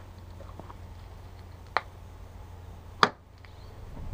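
A hand knocks sharply on a vehicle's side panel.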